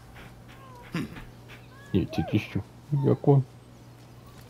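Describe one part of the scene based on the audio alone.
A dog barks and whines up close.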